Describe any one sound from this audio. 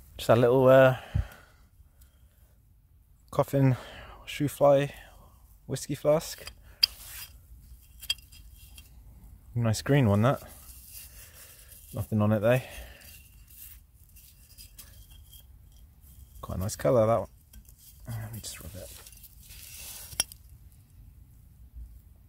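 A hand scrapes and digs through loose soil.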